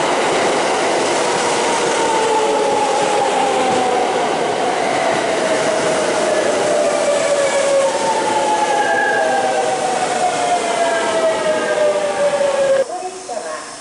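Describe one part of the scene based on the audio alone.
A train rushes past close by with a loud rumbling roar.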